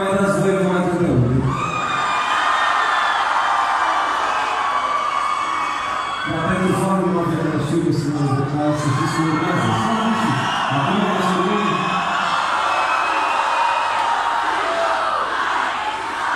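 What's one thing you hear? Loud live band music plays outdoors through a big sound system.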